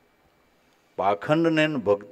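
An older man speaks calmly into a microphone, heard through a loudspeaker.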